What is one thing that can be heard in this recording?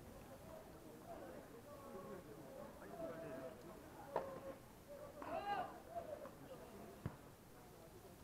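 A crowd of spectators chatters in the distance outdoors.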